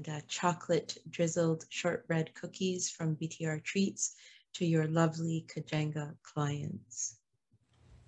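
A middle-aged woman speaks warmly over an online call.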